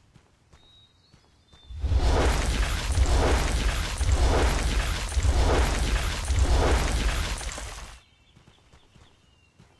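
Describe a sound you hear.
Quick footsteps run up stone steps.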